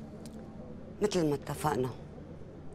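A middle-aged woman speaks briefly and calmly, close by.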